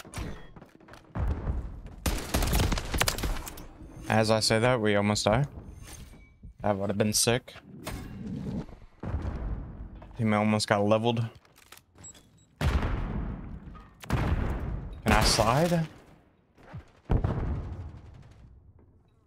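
Gunfire from a video game rattles in quick bursts.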